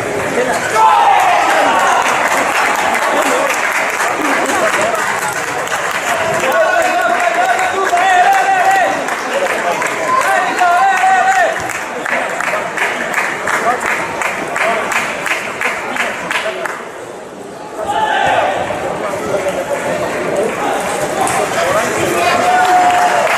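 Men talk in a large echoing hall.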